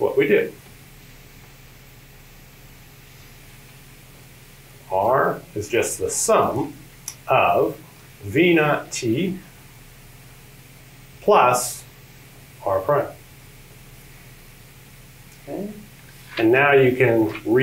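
A man speaks calmly, explaining in short phrases with pauses, through a microphone.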